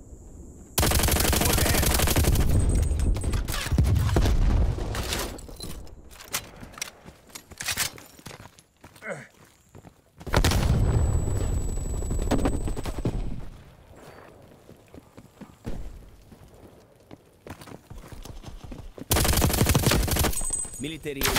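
A machine gun fires loud, rapid bursts.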